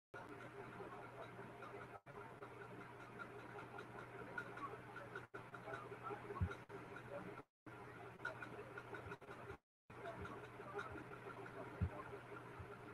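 A man speaks quietly over an online call.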